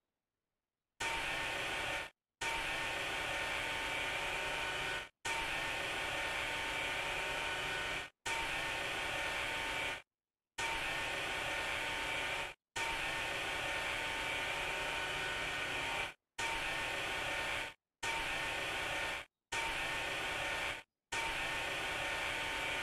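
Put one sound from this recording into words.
An electric sander whirs steadily in short bursts.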